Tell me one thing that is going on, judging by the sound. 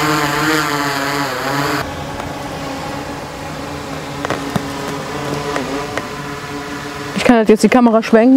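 A drone's rotors whine steadily overhead.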